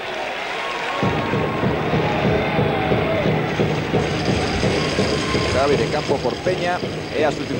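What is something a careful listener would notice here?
A large crowd cheers and claps in an open stadium.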